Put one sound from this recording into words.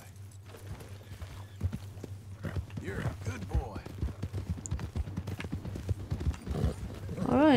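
A horse's hooves thud on soft ground at a steady trot.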